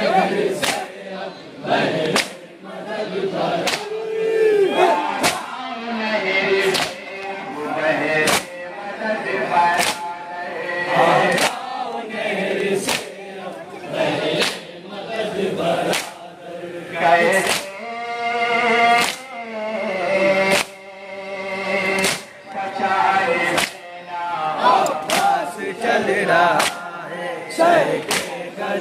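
A man chants loudly into a microphone.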